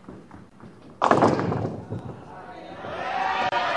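Bowling pins crash and clatter as the ball strikes them.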